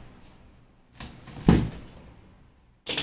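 A metal door panel clicks open.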